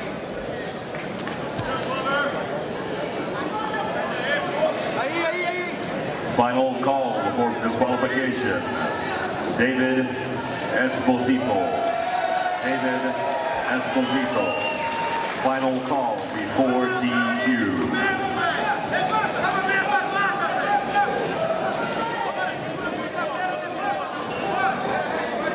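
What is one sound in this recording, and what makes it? A crowd of spectators chatters and shouts in a large hall.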